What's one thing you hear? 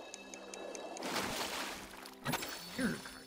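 Water splashes as a fish is pulled out.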